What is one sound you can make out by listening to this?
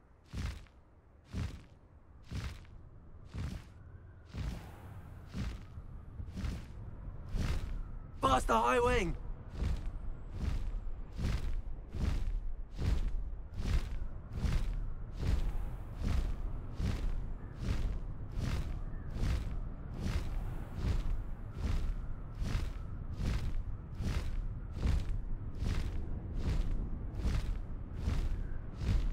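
Large wings flap in a steady, regular beat.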